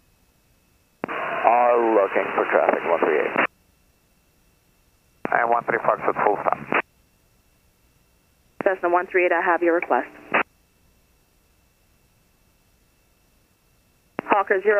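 A man speaks calmly over a headset intercom.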